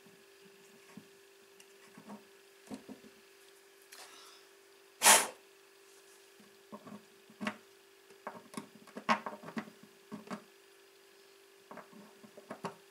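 Small tools tap and scrape against a guitar bridge in short bursts.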